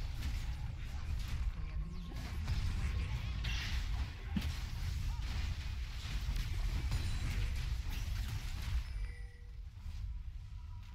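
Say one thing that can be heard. Magic spells whoosh and crackle in a fast game battle.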